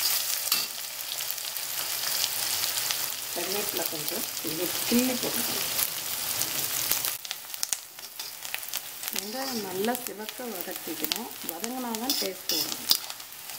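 Onions sizzle loudly in hot oil.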